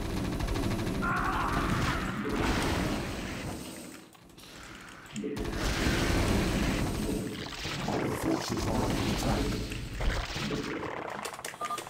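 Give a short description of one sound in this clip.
Video game battle sounds play, with clicks and bursts.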